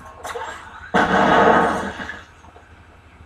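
An explosion booms through a television speaker.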